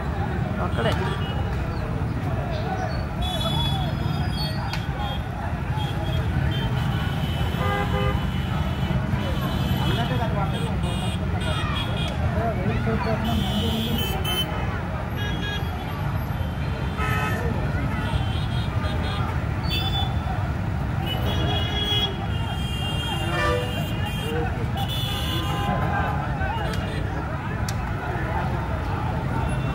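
A large crowd shouts and clamours outdoors, heard from a distance.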